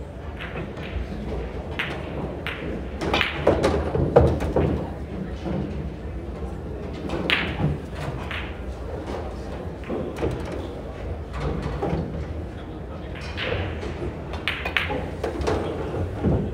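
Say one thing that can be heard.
A cue tip strikes a pool ball.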